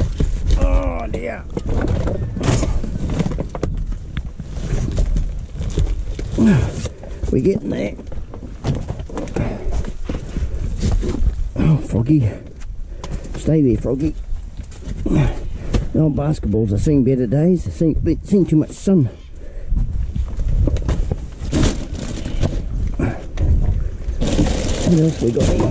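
Rubbish rustles and clatters as hands rummage through a bin.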